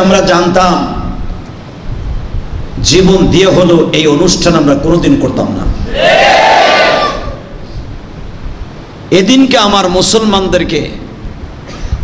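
A man preaches with passion into a microphone, heard through a loudspeaker with echo.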